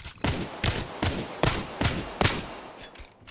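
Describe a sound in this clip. A rifle fires a steady series of loud, sharp shots.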